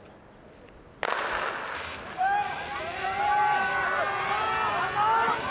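A crowd of spectators cheers and shouts loudly in an open stadium.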